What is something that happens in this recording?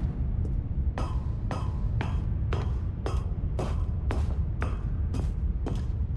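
Footsteps clang steadily on a metal walkway.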